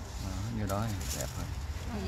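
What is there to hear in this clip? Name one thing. Foil crinkles between fingers.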